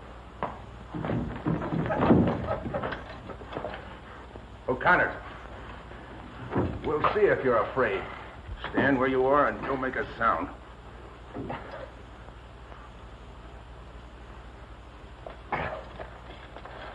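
A man grunts and gasps while struggling.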